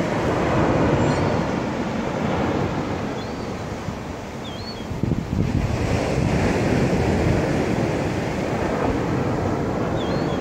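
Seagulls call out nearby.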